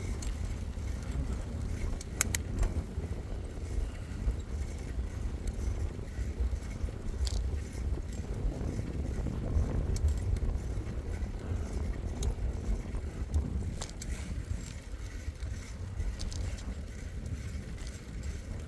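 Bicycle tyres hum steadily on a paved path.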